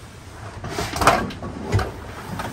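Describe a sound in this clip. A metal drum clanks as it is moved.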